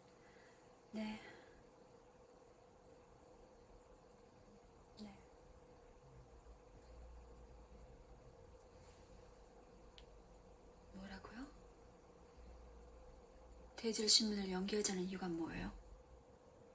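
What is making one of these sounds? A woman speaks quietly into a phone, with pauses between short replies.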